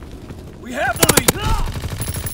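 A revolver fires several loud shots.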